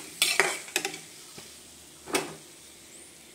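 A metal spoon scrapes and stirs in a frying pan.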